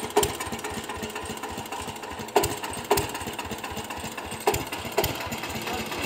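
An engine chugs, driving a winch.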